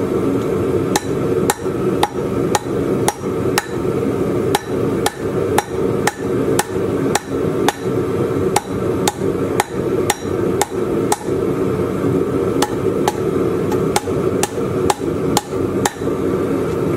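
A hammer rings sharply on hot metal on an anvil in steady blows.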